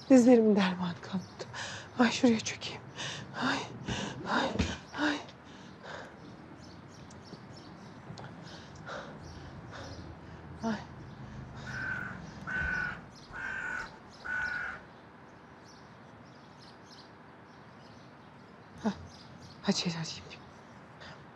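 A middle-aged woman speaks in a distressed, tearful voice nearby.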